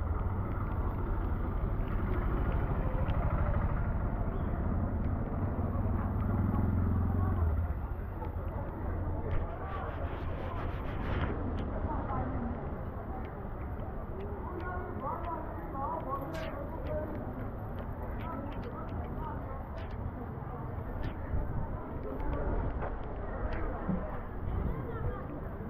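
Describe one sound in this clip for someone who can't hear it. Footsteps splash through puddles on a wet street outdoors.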